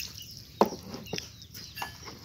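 Water pours and splashes into a plastic tub.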